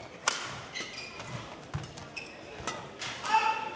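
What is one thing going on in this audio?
A shuttlecock is struck sharply with a racket.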